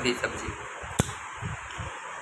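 A young man crunches a crisp.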